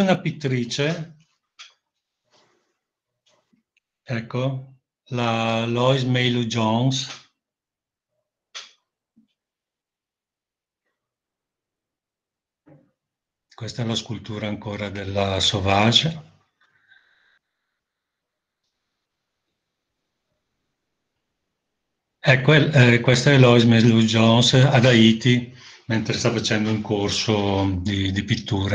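A middle-aged man speaks calmly through an online call, pausing often.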